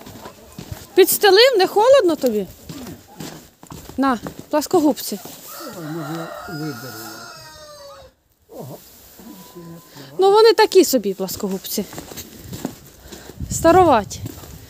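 A rooster crows loudly.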